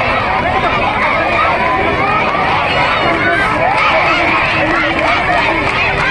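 A large crowd of women chants and talks loudly outdoors.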